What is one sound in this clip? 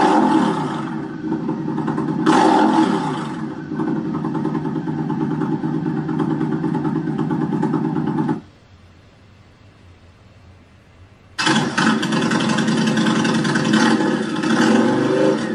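A motorcycle engine idles with a deep, throbbing rumble.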